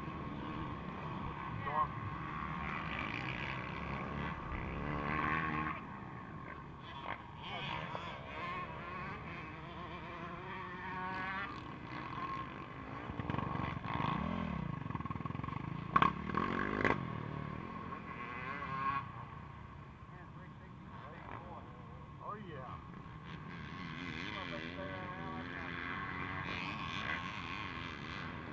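A motorcycle engine idles close by.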